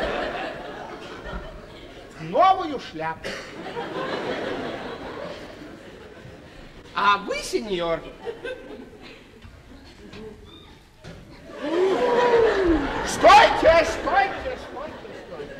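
A man speaks loudly and theatrically in a large room.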